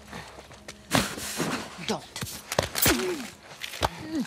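A scuffle breaks out with rough grabbing and thuds.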